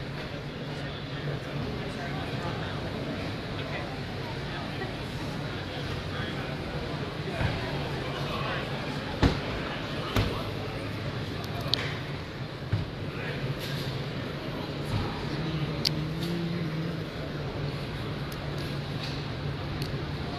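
A crowd of people murmurs in a large, echoing hall.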